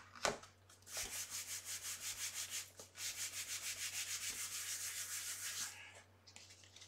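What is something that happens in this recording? Hands rub quickly back and forth over a sheet of card.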